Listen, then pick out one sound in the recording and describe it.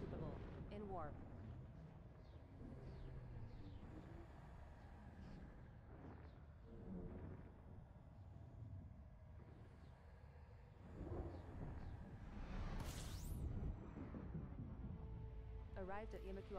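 A spaceship's engine rumbles low and steady.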